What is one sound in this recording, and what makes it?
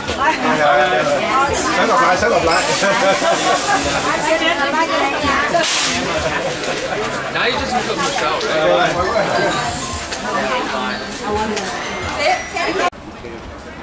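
A group of men and women chat and laugh close by, outdoors.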